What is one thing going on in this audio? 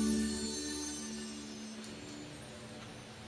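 Music plays from a record and fades away.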